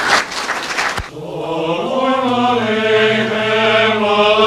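A male choir sings slowly together in harmony, in a reverberant room.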